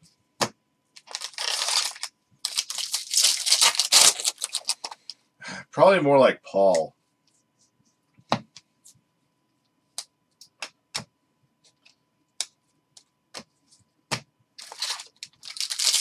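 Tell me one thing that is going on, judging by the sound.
Foil wrappers crinkle as packs are torn open.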